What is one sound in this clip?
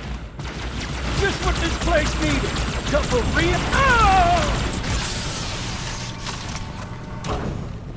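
Electric energy crackles and zaps loudly.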